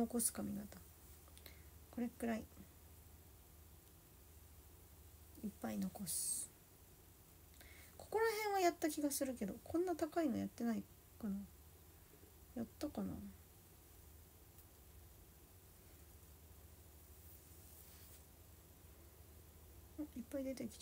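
A young woman speaks softly and playfully, close by, in short bursts.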